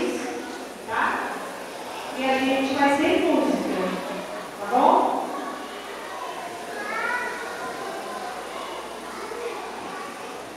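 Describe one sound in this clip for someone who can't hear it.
Children's voices call out and sing nearby in an echoing room.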